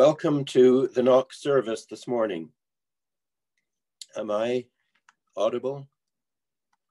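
An elderly man speaks calmly over an online call, with pauses.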